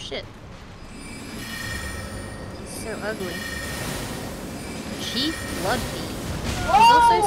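Magic spells shimmer and whoosh.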